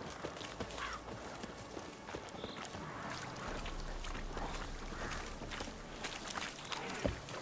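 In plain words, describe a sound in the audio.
Footsteps splash through shallow water and rustle through grass.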